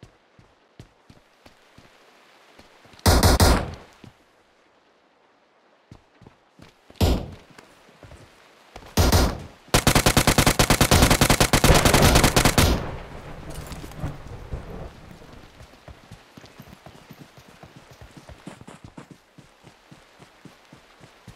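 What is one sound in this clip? Footsteps tap steadily on wooden boards and grass.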